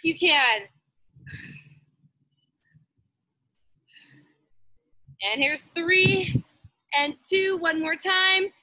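A woman speaks with animation through an online call, her voice rising and sing-song.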